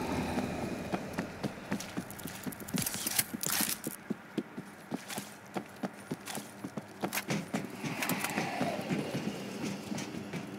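Heavy footsteps thud quickly on a hard floor and stairs.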